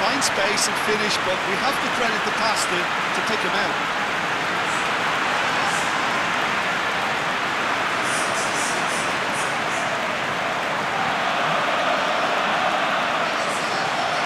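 A large stadium crowd roars and cheers steadily throughout.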